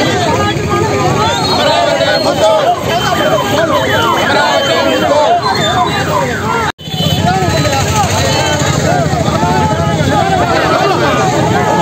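A crowd of men chants slogans loudly in unison outdoors.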